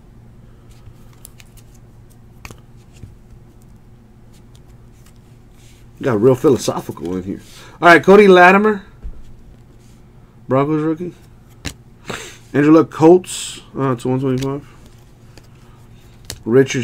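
Trading cards flick and rustle against each other in hands.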